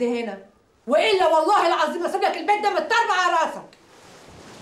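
A woman shouts angrily up close.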